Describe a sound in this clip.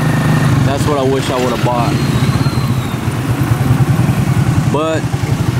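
Cars and motorbikes pass by in traffic.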